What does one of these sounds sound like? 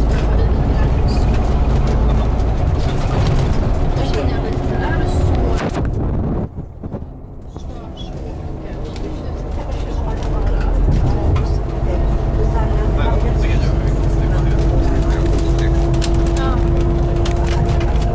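A coach bus drones as it drives along a road.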